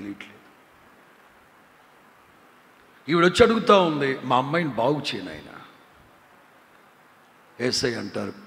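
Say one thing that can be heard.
A middle-aged man preaches forcefully into a microphone, with pauses between phrases.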